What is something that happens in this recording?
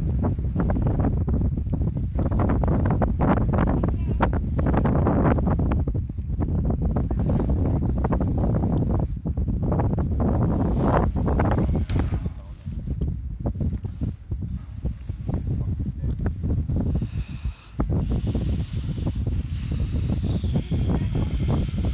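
Strong wind gusts and buffets the microphone outdoors.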